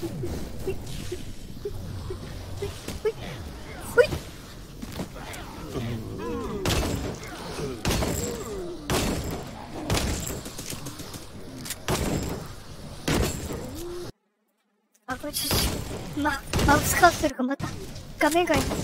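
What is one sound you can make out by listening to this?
Weapons clash and strike repeatedly in a fierce battle.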